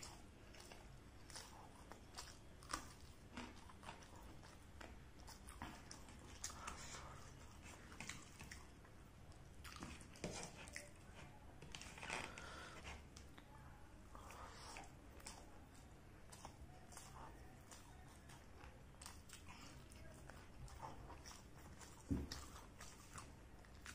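A man chews food loudly with wet smacking sounds close to a microphone.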